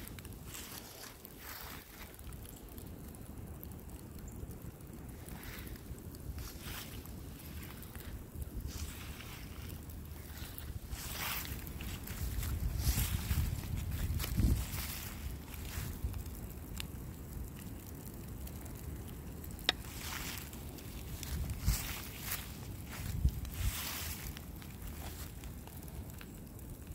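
A fire crackles and pops outdoors.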